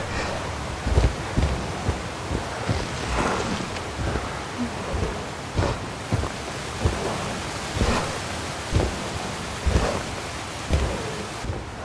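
Heavy footsteps of a giant creature thud on the ground.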